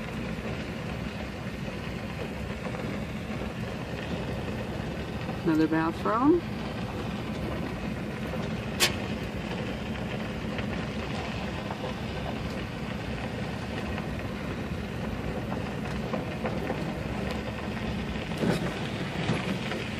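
A vehicle engine hums steadily while driving slowly.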